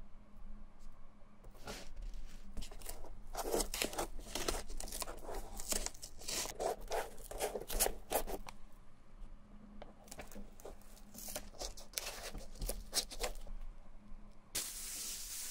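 Masking tape crinkles and rustles as it is pressed onto a shoe.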